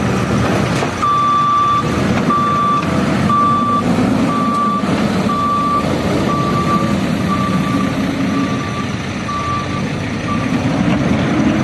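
A reversing alarm beeps steadily.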